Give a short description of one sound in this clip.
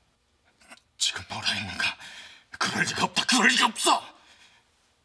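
A middle-aged man speaks urgently, close by.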